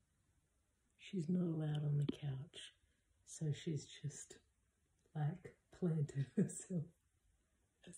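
A woman talks warmly and close by.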